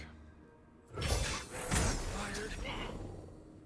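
A magical whoosh and chime sound from a game.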